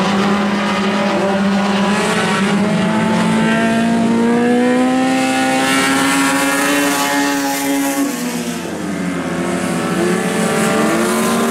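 Race car engines roar at full throttle around a dirt oval.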